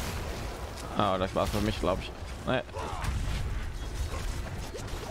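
Magic attacks crackle and thud in a fight.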